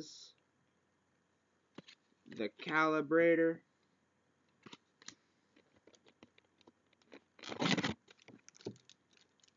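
Playing cards rustle and click as they are handled.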